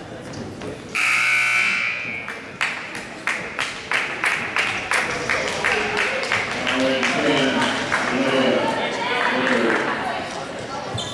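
A crowd claps in rhythm in an echoing gym.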